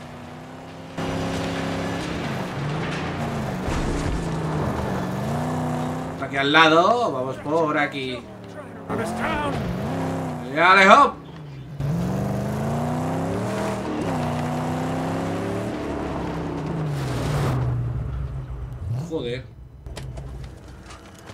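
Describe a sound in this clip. A car engine roars and revs as the car drives over rough ground.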